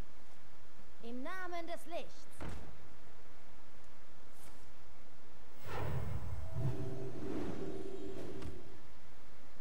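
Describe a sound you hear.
Game sound effects chime and thud as cards are played and creatures attack.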